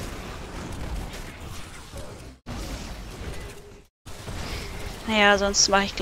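Magic spells crackle and blast in a game.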